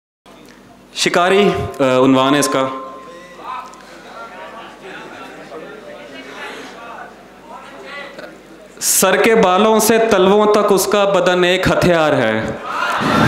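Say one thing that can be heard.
A man recites poetry with feeling into a microphone, heard through loudspeakers.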